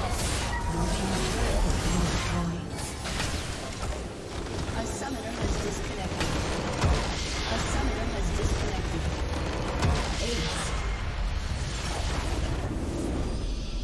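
Game spell effects crash and blast loudly in a fight.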